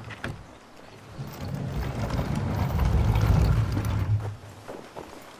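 A heavy wooden gate scrapes and creaks as it swings open.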